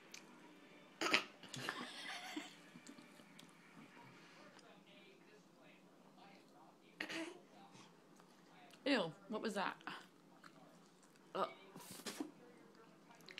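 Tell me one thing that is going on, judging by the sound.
A baby laughs and squeals close by.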